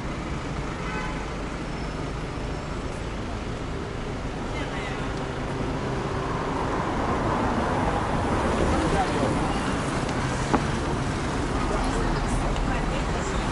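City traffic hums steadily nearby outdoors.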